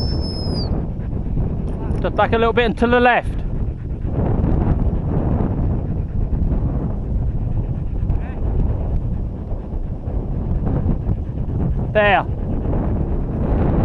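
Wind buffets a microphone outdoors.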